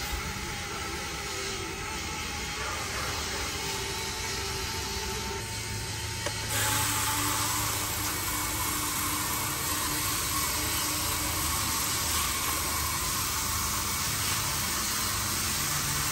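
A small electric motor whines steadily.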